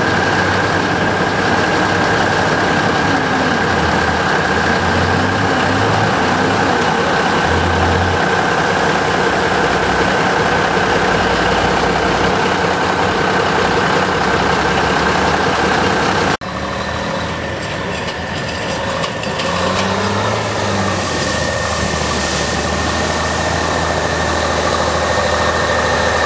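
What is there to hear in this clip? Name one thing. A truck engine rumbles and revs as the truck drives through mud.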